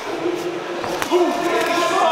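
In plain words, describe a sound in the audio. A boxing glove thuds against an opponent's guard.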